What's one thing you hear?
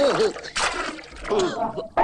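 Water bubbles and splashes in a large pot.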